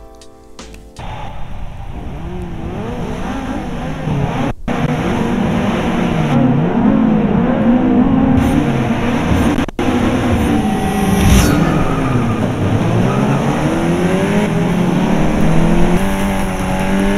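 A racing car engine revs and roars through loudspeakers, rising and falling as gears change.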